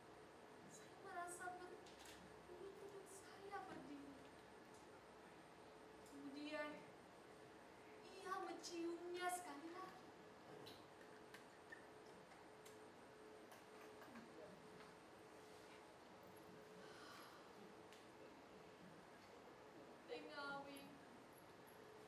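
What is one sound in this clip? A woman sings slow, drawn-out phrases with pauses between them.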